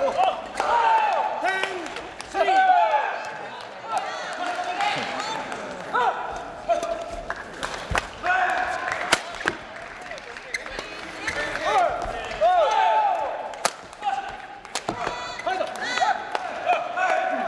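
Rackets smack a shuttlecock back and forth in an echoing hall.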